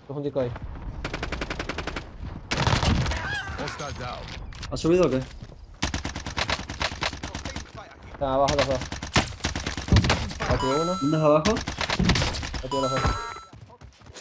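A submachine gun fires rapid bursts in a video game.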